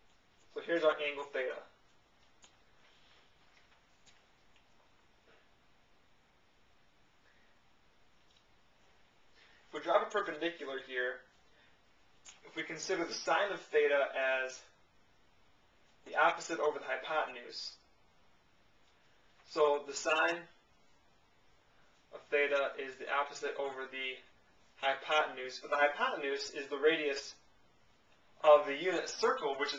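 A young man explains calmly and clearly, close by, with pauses.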